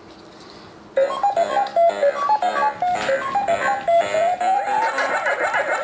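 A small electronic circuit plays short beeping notes at changing pitches.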